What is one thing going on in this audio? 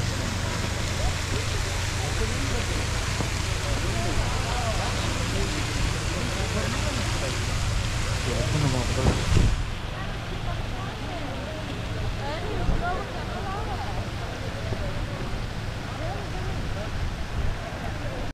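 A fountain splashes steadily.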